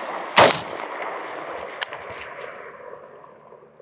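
A rifle fires a single loud shot that echoes across the hills.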